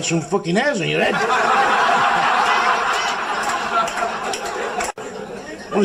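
A large crowd laughs and applauds.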